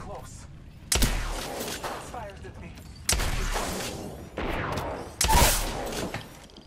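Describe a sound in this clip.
Rifle gunshots fire in short, loud bursts.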